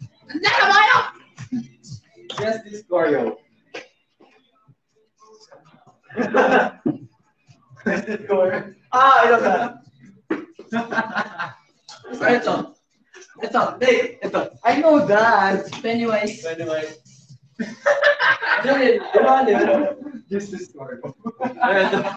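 Young men talk and laugh with animation close by.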